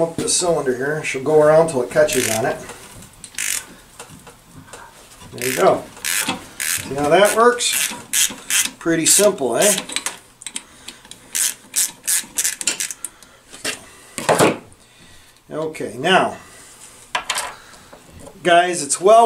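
Metal parts click and clank close by.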